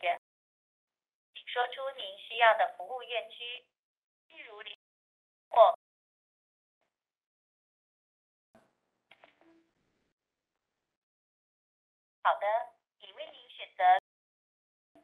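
A man talks calmly into a telephone, heard as if through a phone line.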